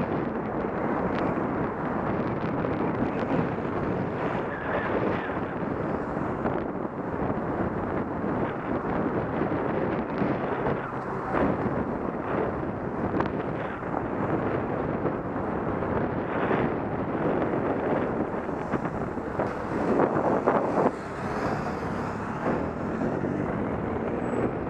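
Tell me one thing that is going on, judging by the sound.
Car engines hum nearby in slow traffic.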